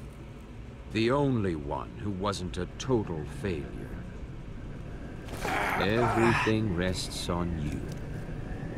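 A man speaks in a calm, menacing voice.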